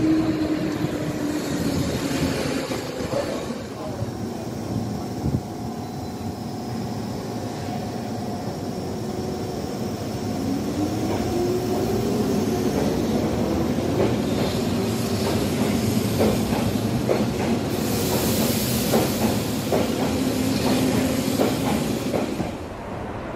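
A train's electric motors hum and whine, rising in pitch as the train pulls away.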